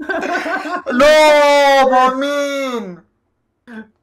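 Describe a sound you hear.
A young man lets out a long, wailing groan, close to a microphone.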